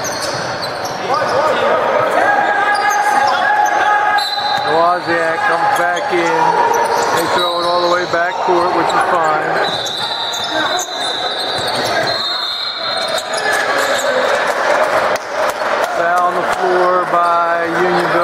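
Sneakers squeak sharply on a hardwood court in a large echoing gym.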